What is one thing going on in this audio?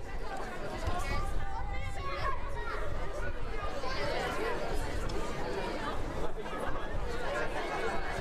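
A woman cheers loudly nearby.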